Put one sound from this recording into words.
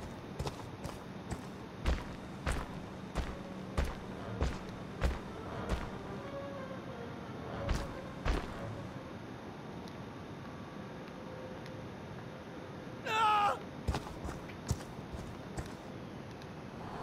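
Heavy footsteps crunch on leaves and twigs.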